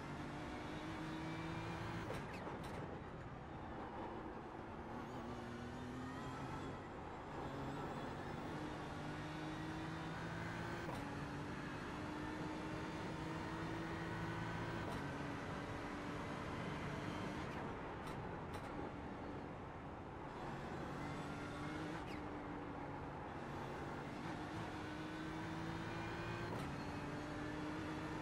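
A race car engine roars steadily, its pitch rising as it speeds up and dropping with each downshift.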